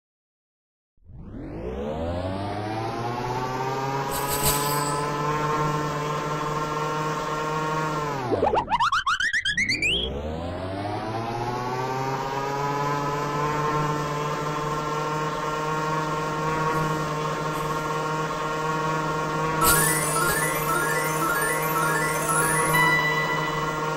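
A small engine hums steadily, then drops away and revs back up.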